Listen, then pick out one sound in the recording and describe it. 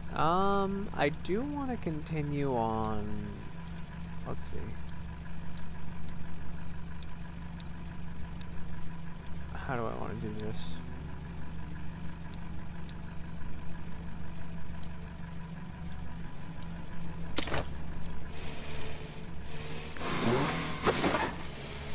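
A small engine hums steadily.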